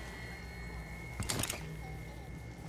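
Sparks crackle and burst with a sharp snap.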